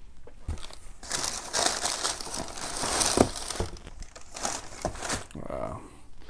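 Packaging rustles and things clatter as a box is rummaged through.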